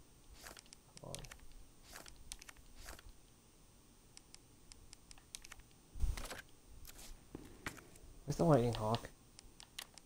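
A young man speaks briefly and casually into a nearby microphone.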